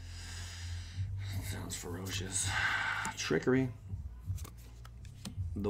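Playing cards rustle and slide in a hand.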